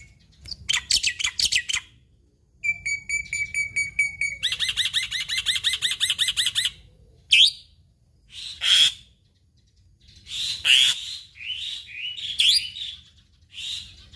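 A caged songbird sings loud, varied bursts of chirps, trills and whistles close by.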